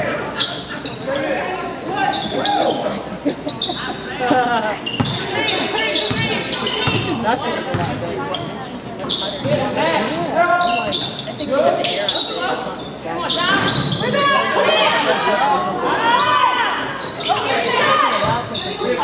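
Sneakers squeak sharply on a hard floor in a large echoing gym.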